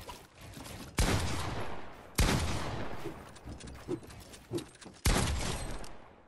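Gunshots crack loudly in a video game.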